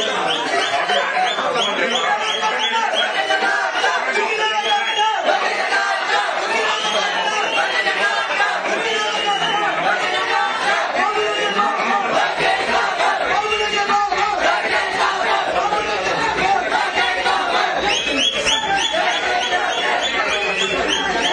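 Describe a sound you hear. A crowd of men talk over one another close by.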